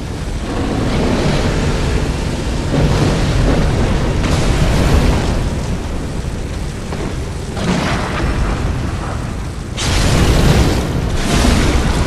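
Flames roar and whoosh in bursts.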